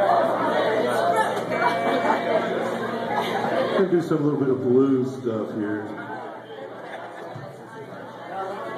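An electric guitar plays loudly through an amplifier in an echoing room.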